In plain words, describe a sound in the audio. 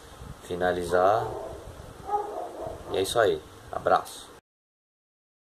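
A young man speaks close to a phone microphone.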